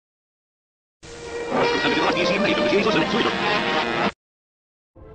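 A short musical jingle plays.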